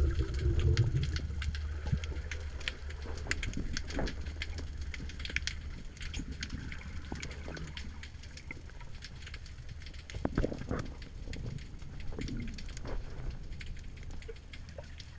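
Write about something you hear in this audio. Water rumbles and swirls in a low, steady muffled wash, heard underwater.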